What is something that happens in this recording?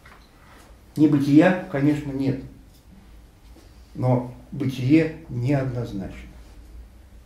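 An elderly man speaks calmly, with pauses.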